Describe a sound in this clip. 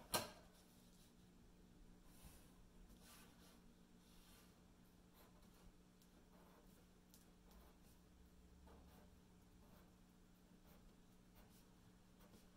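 A marker squeaks softly as it draws lines on paper.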